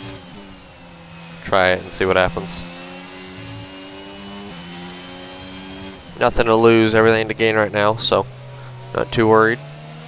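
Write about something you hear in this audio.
A racing car engine hums steadily, shifting pitch as gears change.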